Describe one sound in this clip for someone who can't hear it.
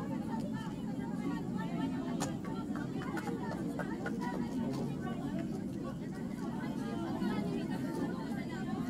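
Young women talk quietly at a distance outdoors.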